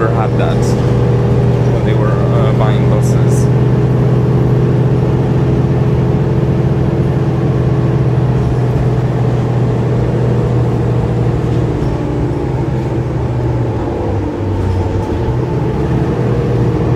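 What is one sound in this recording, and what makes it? A bus engine hums and drones steadily as the bus drives along.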